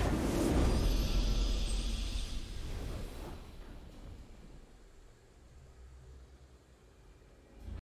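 A triumphant musical flourish rings out and fades.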